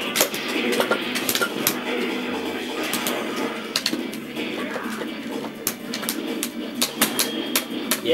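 Punches and kicks in a fighting video game land with sharp smacks through a television speaker.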